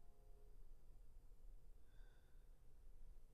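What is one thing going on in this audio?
A piano plays a few soft notes in a large hall.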